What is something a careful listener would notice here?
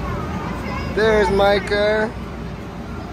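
A small child squeals loudly.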